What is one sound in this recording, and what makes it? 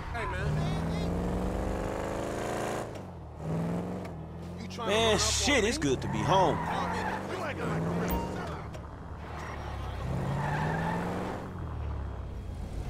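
A car engine revs and hums as the car drives, rising and falling in pitch.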